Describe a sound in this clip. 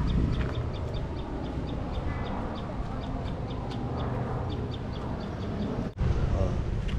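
Footsteps scuff steadily on a paved road.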